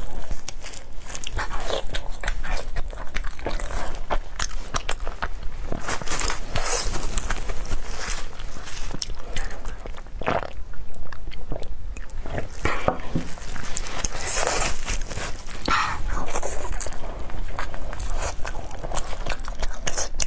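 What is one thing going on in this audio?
A young woman chews food wetly and noisily close to a microphone.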